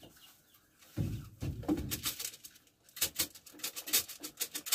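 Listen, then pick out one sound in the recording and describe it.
A plastic bucket knocks and rattles.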